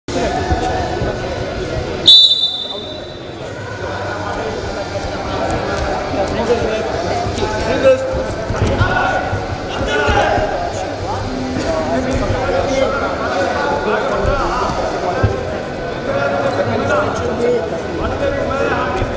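Spectators shout in an echoing hall.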